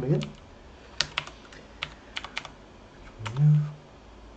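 Computer keys click in short bursts.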